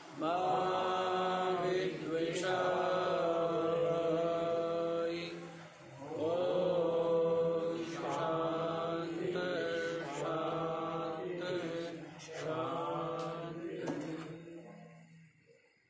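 A man chants slowly in a steady, drawn-out voice close by.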